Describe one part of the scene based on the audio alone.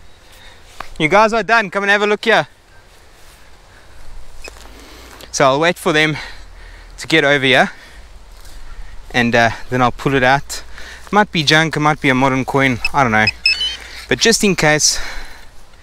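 A metal detector gives warbling electronic tones in short bursts.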